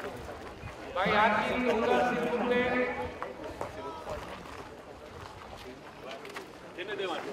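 A man speaks loudly through a loudspeaker outdoors.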